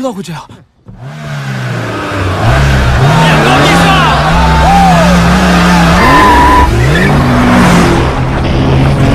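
Car engines rev loudly.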